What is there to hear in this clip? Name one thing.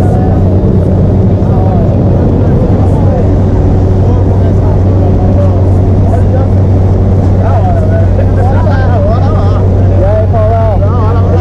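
A small plane's engine drones loudly and steadily.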